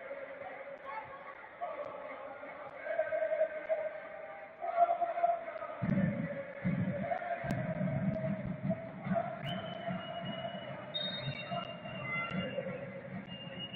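A crowd murmurs and chants in a large open stadium.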